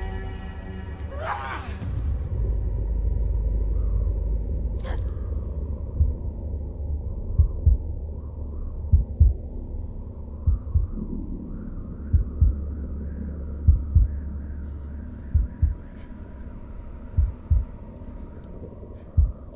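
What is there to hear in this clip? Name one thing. A deep rumble drones with dull, heavy thumps.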